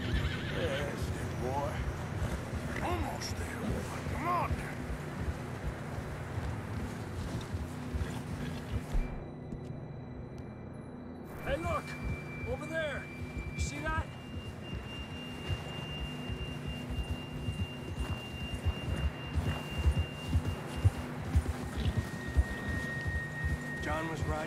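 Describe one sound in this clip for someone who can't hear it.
Horse hooves crunch steadily through deep snow.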